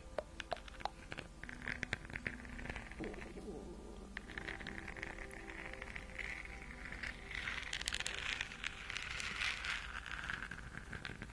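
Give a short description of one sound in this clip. Fingernails tap on a hard plastic ball close to a microphone.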